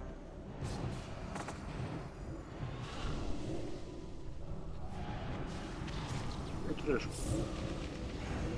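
Spell effects crackle and burst in a fantasy game battle.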